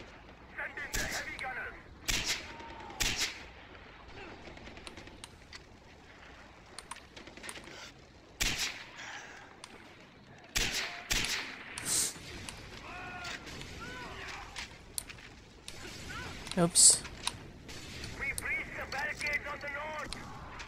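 Rifle shots crack out one at a time, with a short echo after each.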